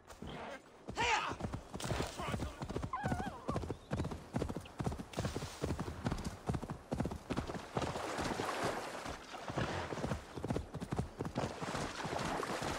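A horse gallops, its hooves thudding quickly on soft ground.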